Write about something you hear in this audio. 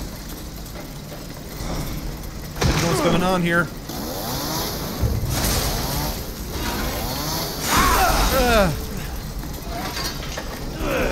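A chainsaw revs and roars.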